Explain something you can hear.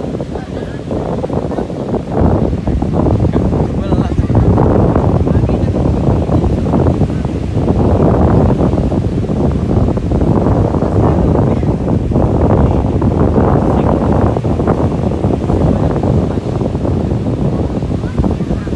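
Waves break and wash onto a beach nearby.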